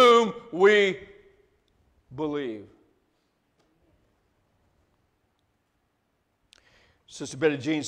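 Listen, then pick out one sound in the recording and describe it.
A middle-aged man speaks with animation through a microphone, pausing between phrases.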